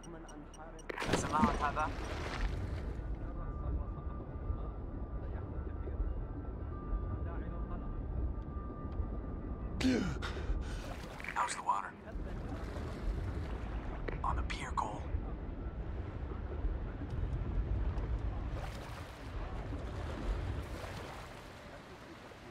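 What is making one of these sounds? Water churns with a low, muffled underwater rumble.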